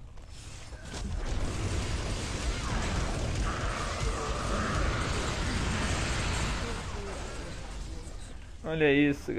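Game combat sounds crash and roar.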